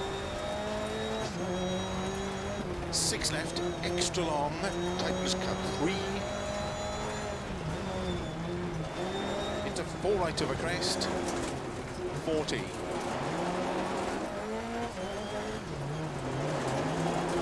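Gravel crunches and rattles under the tyres.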